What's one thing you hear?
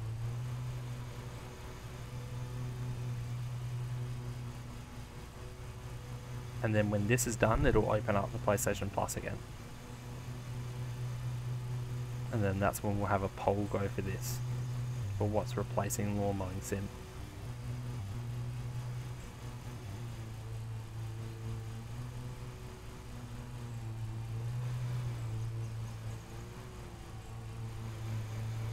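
A ride-on mower engine hums steadily.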